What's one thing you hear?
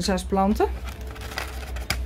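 Seeds rattle out of a paper packet.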